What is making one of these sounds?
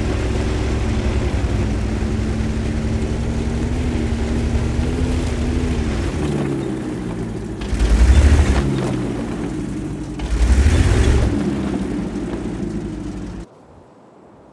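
A heavy tank engine rumbles loudly and steadily, then cuts off.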